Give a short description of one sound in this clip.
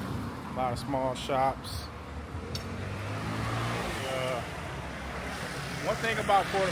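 A man speaks casually and close by.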